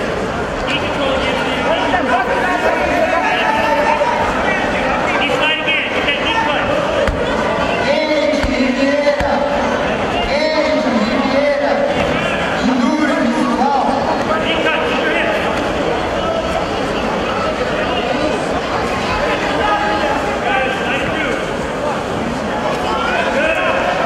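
A crowd of men shout and call out loudly in an echoing hall.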